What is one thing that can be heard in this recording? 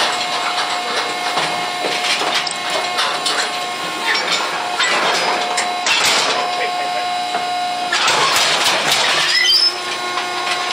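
Metal gate bars rattle and clank.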